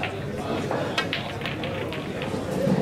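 A cue ball smashes into a rack of pool balls, which clack and scatter.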